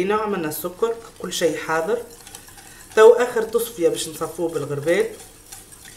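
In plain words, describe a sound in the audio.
A whisk scrapes and taps inside a metal pot.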